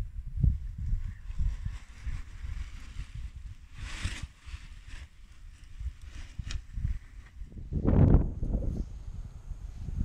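A paraglider wing flaps and rustles in the wind.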